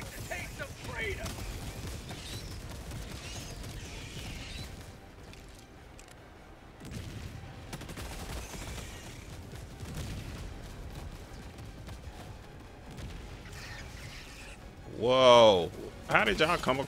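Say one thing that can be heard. Explosions rumble and boom nearby.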